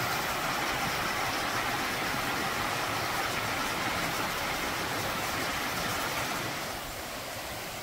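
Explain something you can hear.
A stream rushes and splashes over rocks nearby.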